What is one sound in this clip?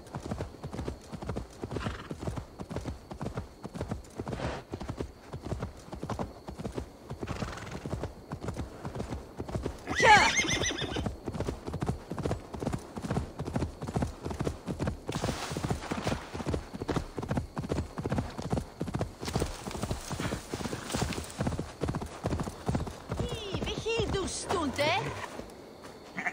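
A horse's hooves thud rhythmically on grass at a gallop.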